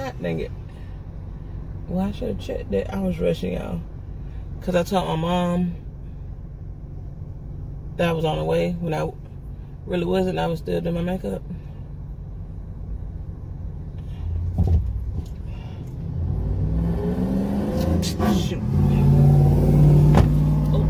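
A car engine hums steadily in the background.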